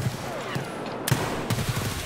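A gunshot fires up close.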